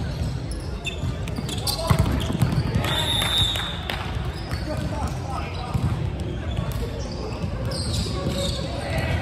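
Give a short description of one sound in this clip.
A volleyball is hit with sharp slaps in a large echoing hall.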